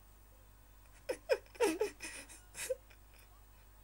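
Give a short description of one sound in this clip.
A teenage boy laughs.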